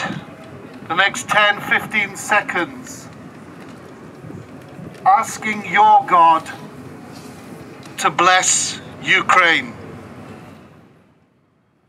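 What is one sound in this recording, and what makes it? A man chants in bursts through a megaphone outdoors.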